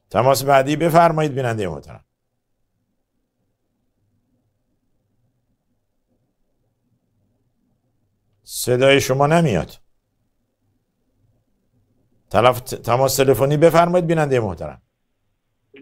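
A man speaks calmly and slowly into a microphone, with long pauses.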